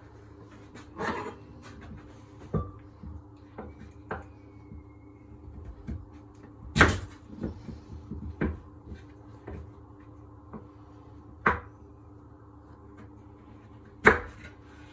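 A knife chops through carrots on a wooden board.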